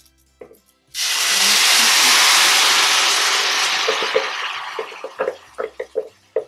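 Tomato sauce hisses and sizzles loudly as it pours into a hot pan.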